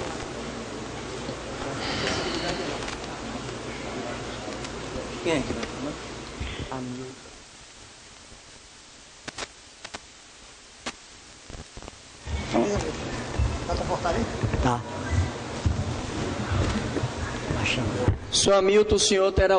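Men talk in a room with some echo.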